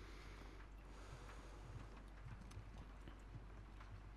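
Footsteps tread slowly on a wooden floor.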